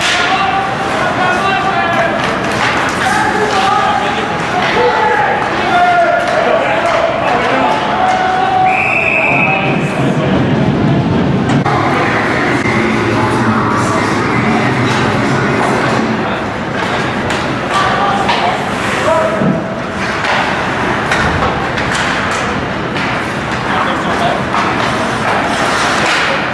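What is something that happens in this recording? Spectators chatter and call out in an echoing arena.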